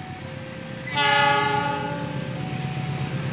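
A train horn blares loudly.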